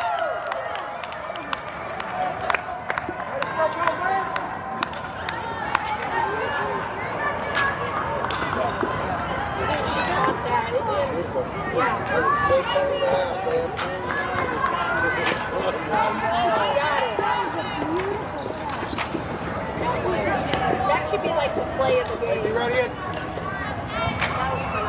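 Young girls chatter and call out across an echoing indoor hall.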